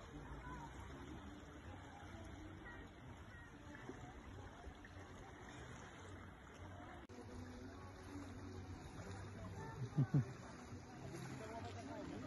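Small waves lap gently on a sandy shore.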